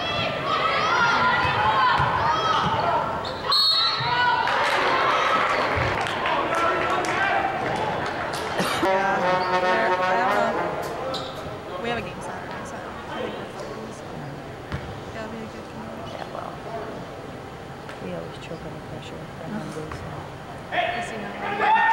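A small crowd of spectators murmurs and calls out in a large echoing gym.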